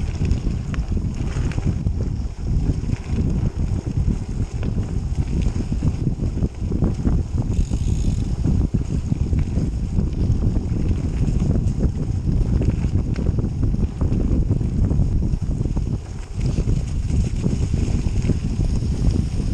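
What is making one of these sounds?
Wind rumbles loudly against the microphone.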